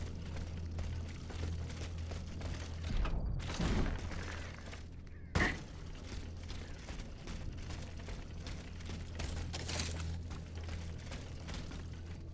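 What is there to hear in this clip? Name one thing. Footsteps patter quickly on stone as someone runs.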